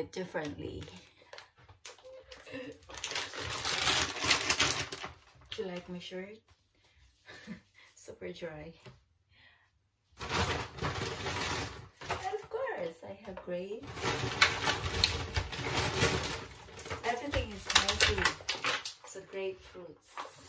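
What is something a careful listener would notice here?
Plastic packaging crinkles in gloved hands.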